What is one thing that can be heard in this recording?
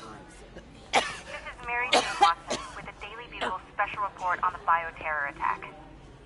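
A woman coughs hard through a mask.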